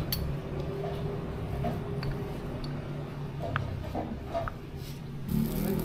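Glass jars clink on a table.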